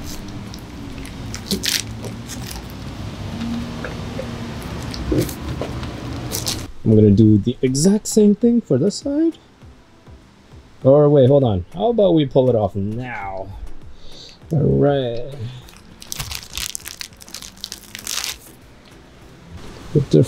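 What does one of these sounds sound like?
Plastic film crinkles and rustles as hands press it down.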